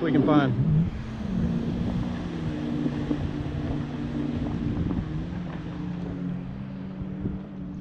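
A jet ski engine drones steadily in the distance across the water.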